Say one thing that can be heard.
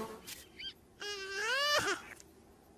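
A cartoon lizard squeaks a short rising yelp.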